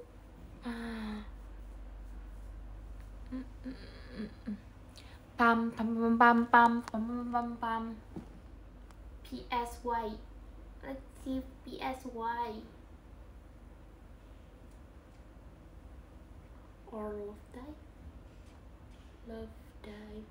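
A young woman talks close to the microphone, with pauses.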